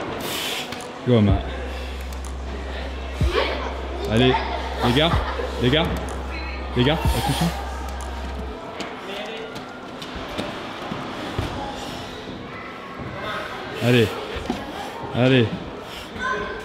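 A man grunts and strains with effort.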